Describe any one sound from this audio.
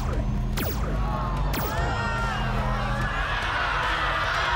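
A crowd of young people cry out in distress.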